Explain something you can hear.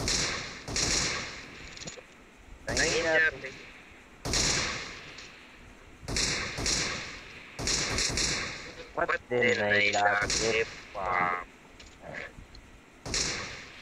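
Gunshots crack in short, loud bursts.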